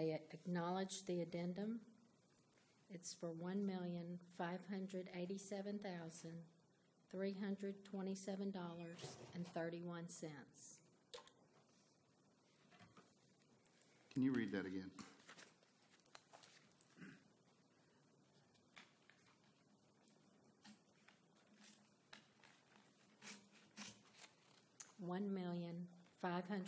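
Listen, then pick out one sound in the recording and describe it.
A woman speaks steadily into a microphone.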